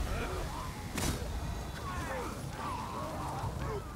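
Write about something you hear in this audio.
A sword swishes and clangs in combat.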